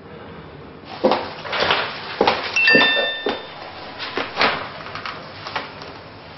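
Footsteps tap along a hard floor.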